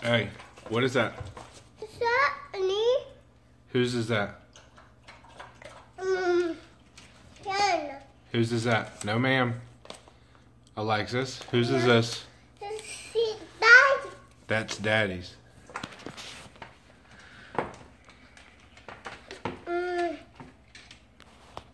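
A toddler babbles and talks close by.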